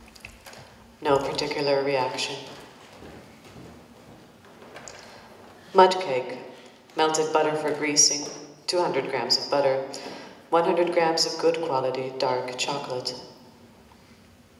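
A young woman speaks clearly and expressively in a hall.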